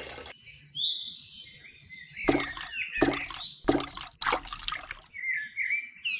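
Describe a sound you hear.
Water sloshes as a small bucket is dipped into it.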